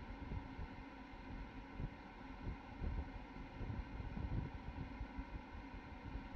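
A rocket on its launch pad vents gas with a steady hiss.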